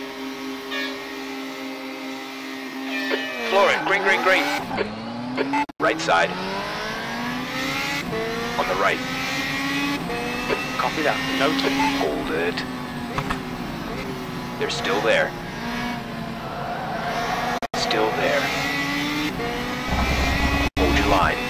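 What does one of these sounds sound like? A racing car engine idles, then revs hard as the car pulls away.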